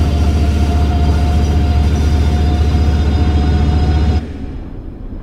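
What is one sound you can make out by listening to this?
A diesel locomotive engine rumbles loudly outdoors.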